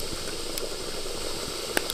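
A man sips a hot drink from a glass.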